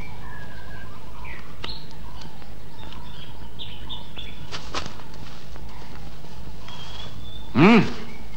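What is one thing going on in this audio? Dry grass rustles as a woman pushes through it.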